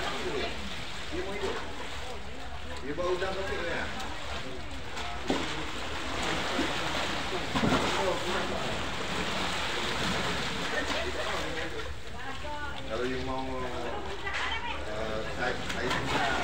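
Men talk nearby in short, lively bursts.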